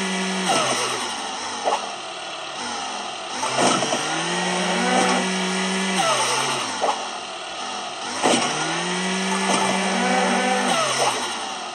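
A cartoon car engine hums and revs up and down in a game.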